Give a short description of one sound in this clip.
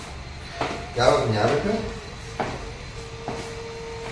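Footsteps come down stairs.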